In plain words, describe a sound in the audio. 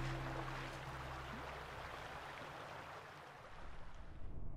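A river flows and ripples over stones.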